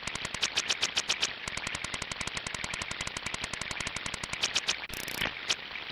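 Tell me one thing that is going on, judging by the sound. A fishing reel clicks rapidly as line is wound in.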